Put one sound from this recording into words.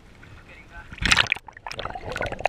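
A fish splashes into the water.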